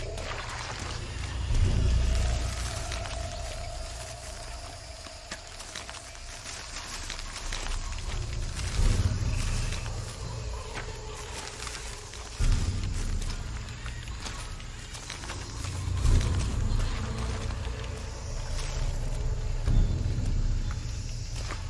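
Leaves and ferns rustle as someone creeps through dense undergrowth.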